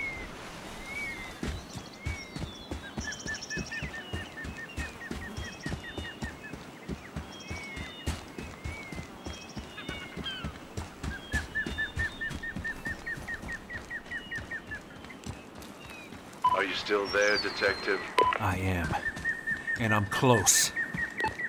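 Footsteps crunch on sand at a steady walking pace.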